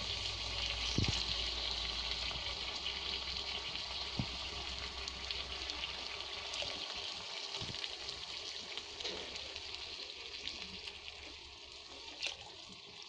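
A metal spatula scrapes and knocks against a pan.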